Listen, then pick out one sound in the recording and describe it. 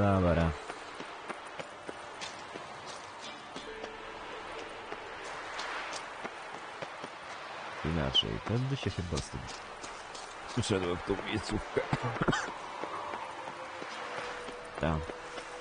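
Footsteps crunch on stone and gravel.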